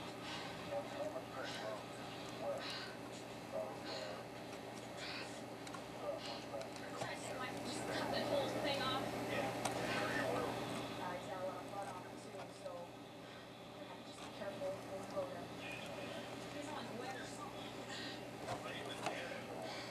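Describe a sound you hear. Solder hisses and sizzles faintly under a hot iron.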